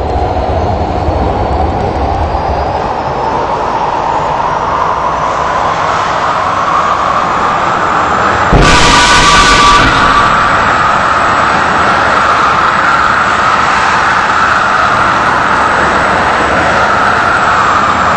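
A subway train rumbles steadily through a tunnel with a rising motor whine.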